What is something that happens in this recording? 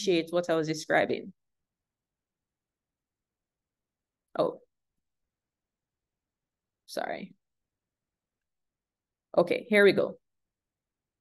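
A young man speaks calmly over an online call, in short phrases with pauses.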